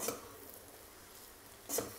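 A metal spatula scrapes and tosses rice in a pan.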